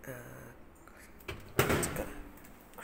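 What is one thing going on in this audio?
A microwave door shuts with a thud.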